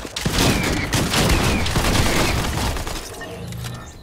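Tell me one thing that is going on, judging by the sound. A pickaxe strikes with sharp, crunching hits.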